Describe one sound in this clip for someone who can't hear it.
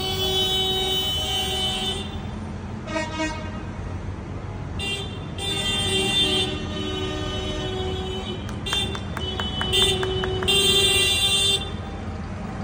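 Tractor horns honk loudly, several times.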